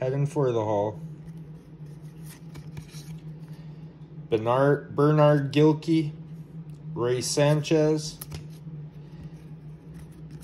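Trading cards slide and rustle softly against each other in hands.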